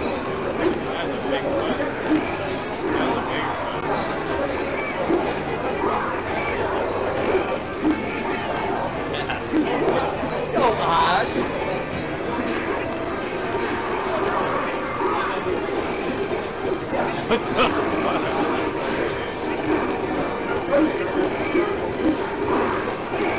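A crowd of people chatters in a busy, echoing room.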